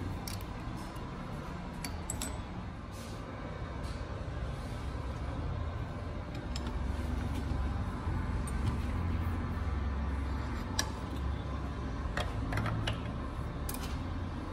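Metal parts clink and tap against each other.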